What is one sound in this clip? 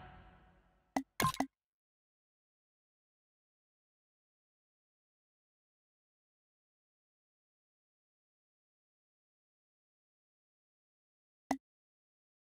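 Short menu blips sound a few times.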